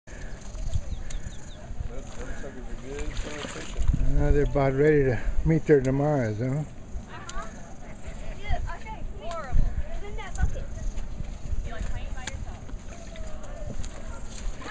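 Water splashes and sloshes as hands stir through a tub.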